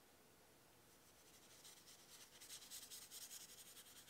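A wet paintbrush brushes softly across paper.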